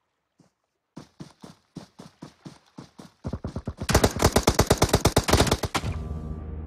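Rifle shots fire in rapid bursts, close by.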